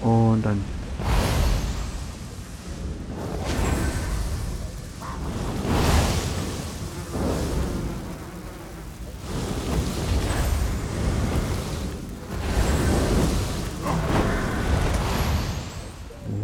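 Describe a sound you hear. Magic spells blast and crackle in loud bursts.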